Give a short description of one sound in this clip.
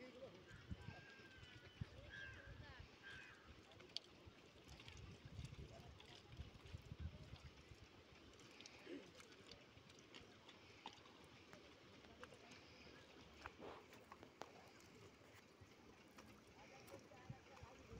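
Feet squelch and splash in wet mud.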